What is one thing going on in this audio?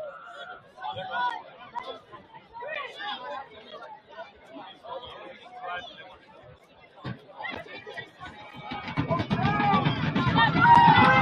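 A crowd of spectators chatters at a distance outdoors.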